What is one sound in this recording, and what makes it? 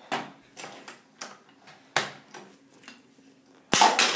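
Small toy parts click and tap on a table.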